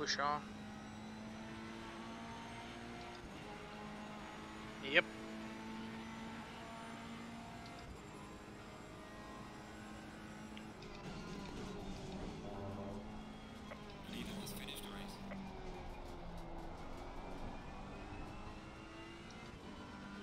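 A racing car engine drones steadily, its pitch shifting as gears change.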